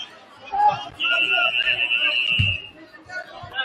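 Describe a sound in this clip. A referee blows a long, shrill whistle.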